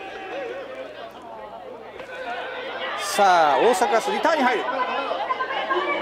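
A crowd of players shouts and cheers from the sideline, outdoors.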